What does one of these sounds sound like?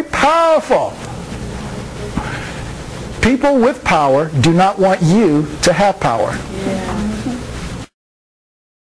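A man speaks with animation and expressive pitch.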